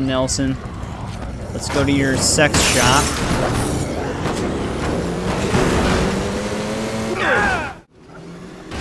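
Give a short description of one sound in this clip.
A vehicle engine roars as a truck drives.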